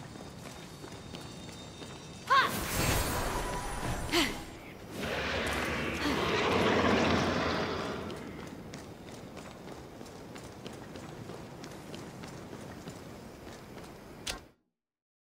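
Footsteps patter on stone.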